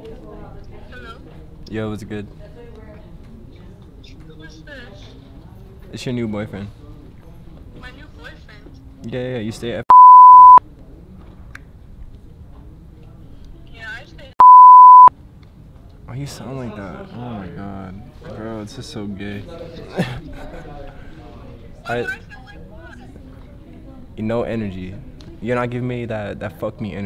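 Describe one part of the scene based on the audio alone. A young man talks on a phone close by, casually.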